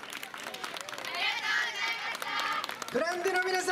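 Young women shout together loudly.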